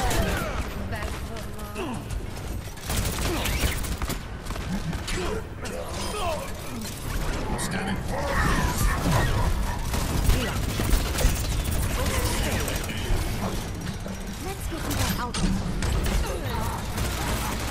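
Video game guns fire in rapid bursts.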